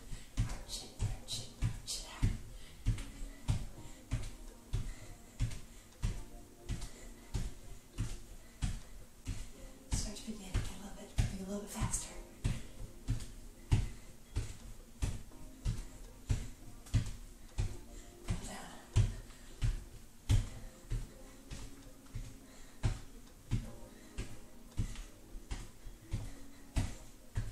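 Bare feet thump rhythmically on a wooden floor.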